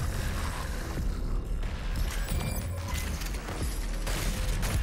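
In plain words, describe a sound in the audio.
A heavy gun fires loud booming shots.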